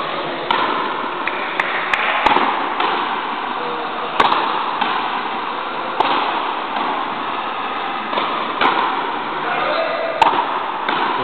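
A ball smacks sharply against a wall and floor, echoing in a large hall.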